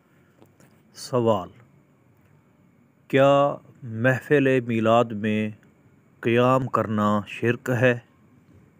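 A man speaks into a close microphone, calmly and with emphasis, in short phrases.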